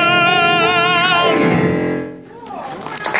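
A young man sings loudly with a wavering held note, ending with a falling slide.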